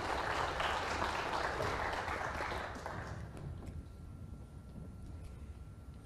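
Snooker balls click softly as they are set on the table.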